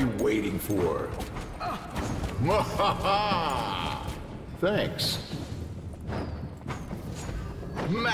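A fireball whooshes past.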